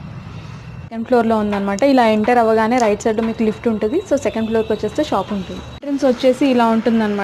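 A young woman speaks with animation, close to a clip-on microphone.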